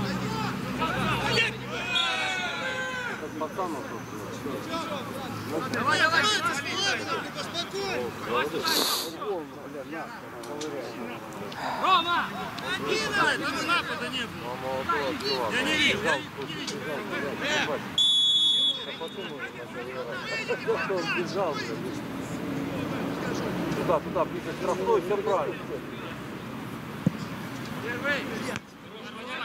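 Young men shout to each other on an open outdoor pitch.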